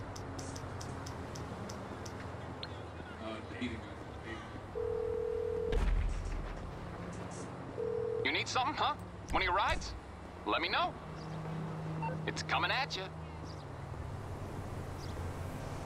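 Footsteps tap steadily on a pavement.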